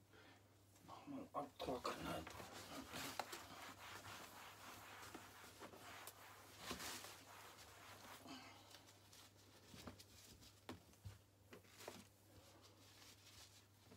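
A cloth rubs and wipes across a hard surface.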